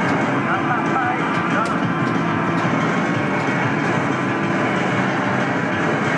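An arcade racing game plays loud engine and music sounds through its speakers.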